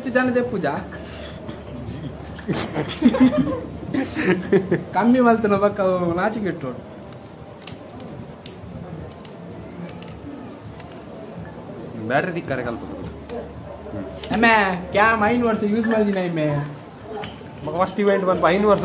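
A young man talks and laughs close by, with animation.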